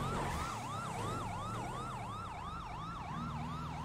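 A police car's siren wails.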